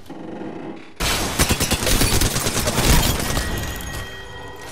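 A rapid burst of gunfire rattles loudly.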